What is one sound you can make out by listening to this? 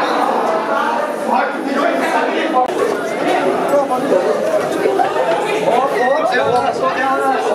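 A crowd of teenagers chatters loudly nearby.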